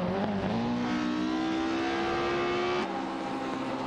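A racing car engine revs high and climbs in pitch as it accelerates.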